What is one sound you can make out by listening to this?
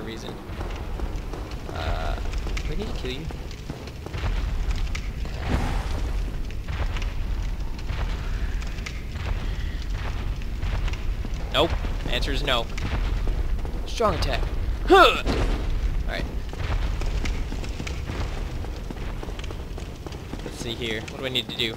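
Footsteps thud on a stone floor.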